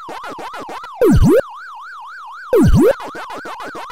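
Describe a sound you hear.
A short electronic zap sweeps down when a ghost is eaten.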